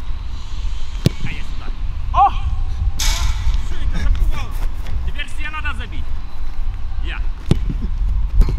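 A football is kicked hard with a sharp thud.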